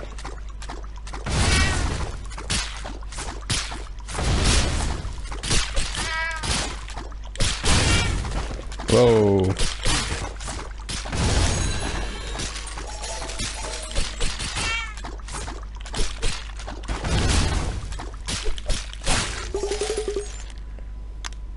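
Cartoon fight sounds thump and crack in quick bursts.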